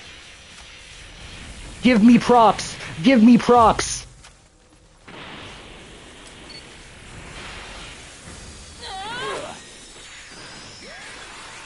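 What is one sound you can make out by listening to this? Energy blasts roar and crackle.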